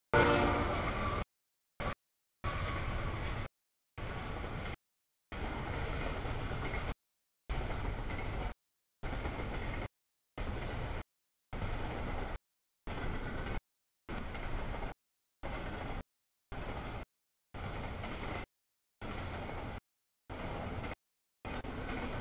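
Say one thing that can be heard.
A freight train rumbles and clatters past on the tracks.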